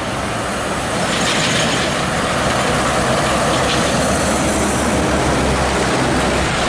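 A bus engine rumbles loudly as it passes close by.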